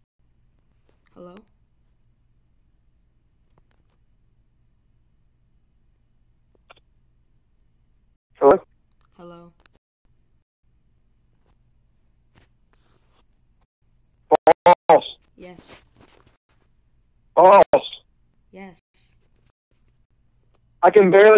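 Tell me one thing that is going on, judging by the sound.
A young man speaks through an online call, in short bursts.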